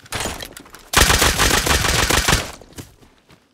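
A heavy weapon fires with a loud blast.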